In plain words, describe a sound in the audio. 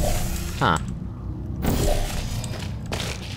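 A portal opens with a whooshing burst.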